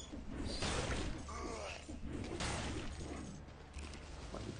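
Blades slash and strike in quick, crashing bursts.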